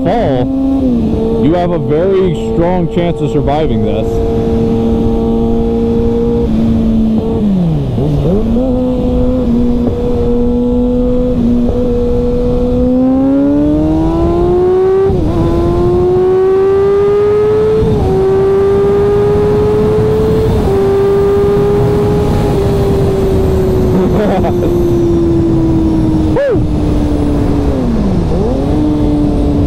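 A motorcycle engine hums steadily up close, its pitch rising and falling as it speeds up and shifts gears.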